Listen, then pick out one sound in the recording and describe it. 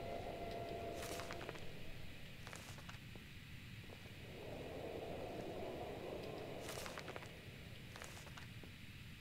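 A book opens and closes with a papery thump.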